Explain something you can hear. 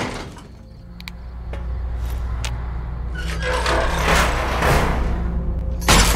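A heavy metal door rumbles and grinds open.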